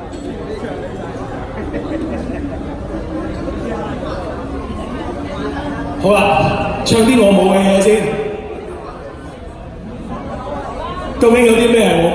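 Backing music plays from a loudspeaker.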